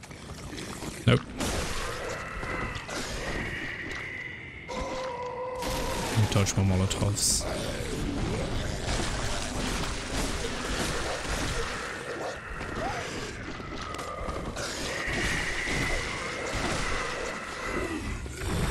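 Blades strike and clash in a fight.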